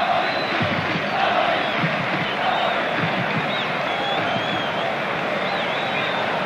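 A large stadium crowd roars and chants in the distance.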